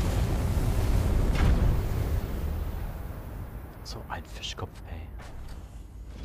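Steam hisses out in a cloud.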